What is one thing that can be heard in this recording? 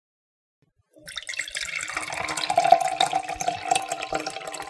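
Wine pours and splashes into a glass.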